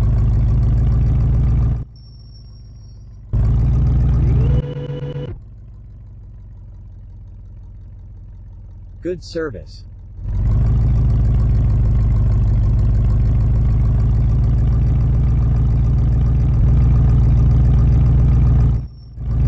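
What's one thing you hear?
A truck engine hums and drones steadily.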